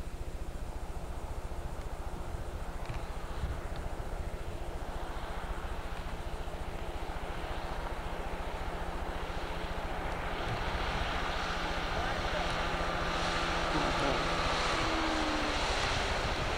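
An outboard motor drones as a boat speeds across the water, growing louder as it approaches.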